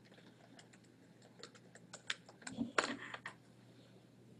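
Keys click on a computer keyboard as someone types.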